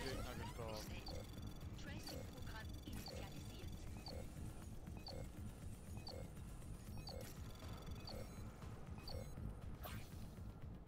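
Short electronic beeps sound at a steady pace.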